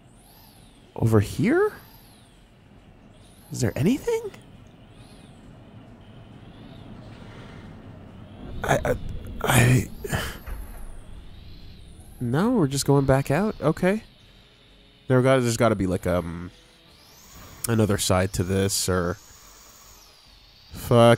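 A hover engine whooshes in short bursts.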